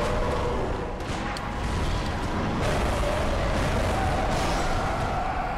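Blades clash and strike.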